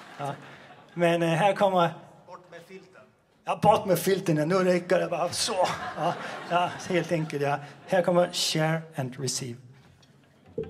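A man speaks to an audience through a microphone.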